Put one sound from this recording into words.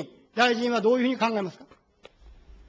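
A middle-aged man speaks firmly into a microphone.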